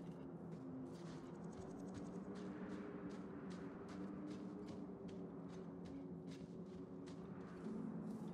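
Footsteps run quickly over sand and gravel.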